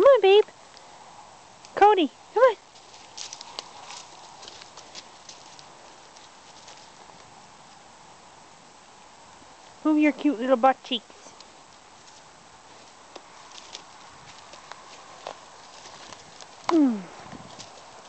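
A dog whines and yelps in short high cries.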